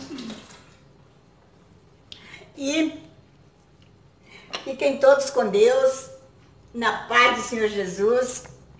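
An elderly woman speaks close by with animation.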